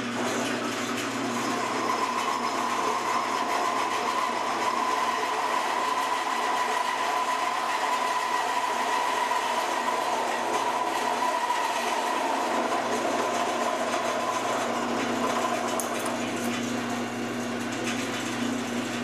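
A cutter grinds and whines through metal.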